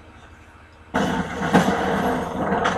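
Fight sounds from a video game play through a television speaker.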